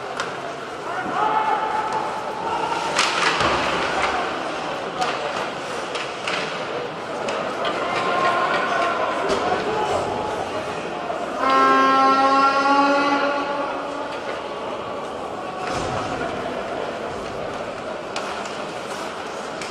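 Skates scrape across the ice in a large echoing arena.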